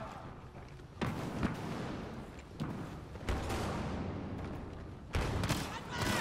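Heavy blasts boom and rumble.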